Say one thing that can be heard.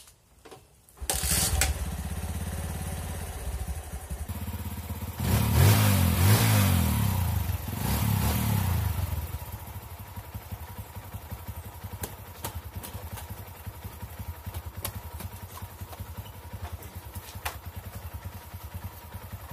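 A motorcycle engine starts and idles with a steady rumble.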